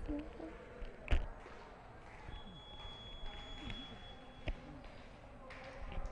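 Young women chatter and call out in a large echoing hall.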